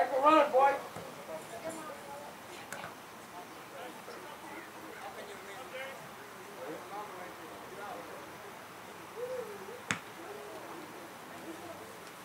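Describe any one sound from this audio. Young men shout to each other across an open playing field outdoors.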